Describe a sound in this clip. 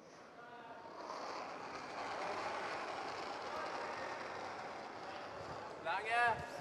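Brooms sweep rapidly over ice.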